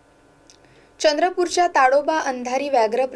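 A young woman speaks clearly and steadily into a close microphone.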